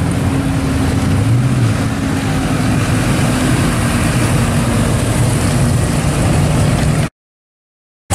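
A muscle car's engine rumbles loudly as it rolls by.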